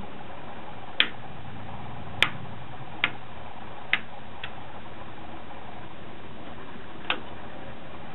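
Plastic parts click sharply as fingers press and snap them into place.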